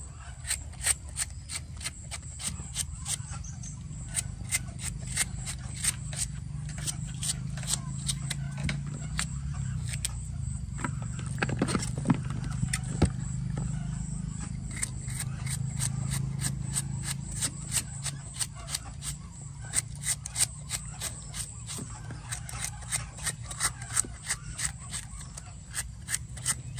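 A knife slices crisply through firm vegetable stalks in quick, repeated strokes.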